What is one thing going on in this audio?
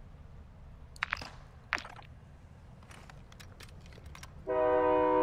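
A rifle clicks and rattles as it is handled and raised to aim.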